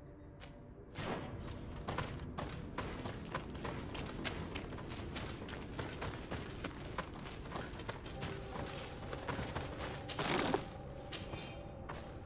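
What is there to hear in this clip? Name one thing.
Footsteps crunch quickly over leaves and stone.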